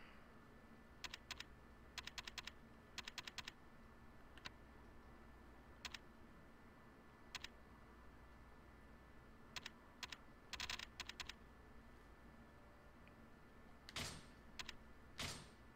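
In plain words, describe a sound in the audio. Short electronic menu blips tick in quick bursts.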